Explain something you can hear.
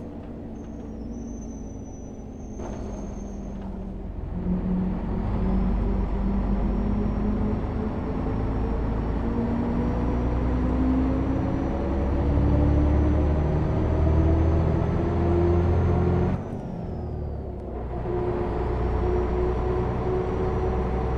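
A bus engine hums and rises in pitch as the bus speeds up.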